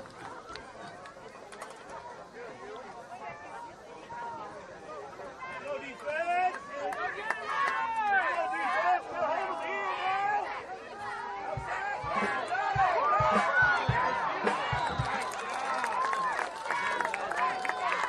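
A crowd of spectators shouts and cheers outdoors, growing louder as a play unfolds.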